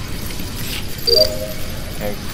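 A soft electronic chime rings once.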